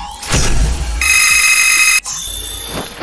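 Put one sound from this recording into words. A video game plays a bright electronic tone as scores tally up.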